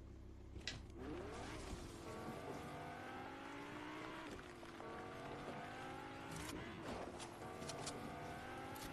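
A car engine revs up repeatedly as it speeds along.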